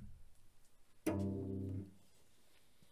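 A cello plays a loud bowed note.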